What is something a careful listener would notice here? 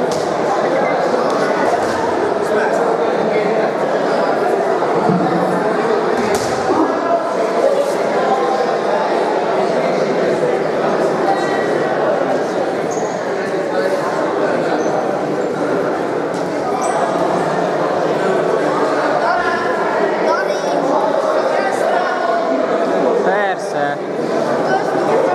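A crowd of men and women chatters loudly in an echoing hall.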